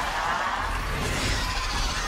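A monstrous creature roars loudly.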